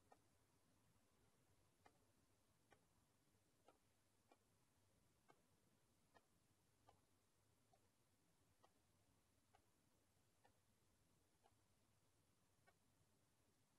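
Slow footsteps click on a stone floor in a large echoing hall.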